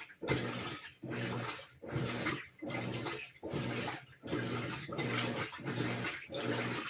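A top-load washing machine agitates its wash load in rhythmic bursts.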